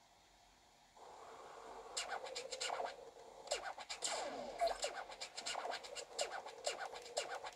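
Upbeat game music plays with bouncing sound effects.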